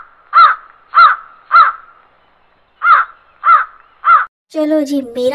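A crow caws loudly several times.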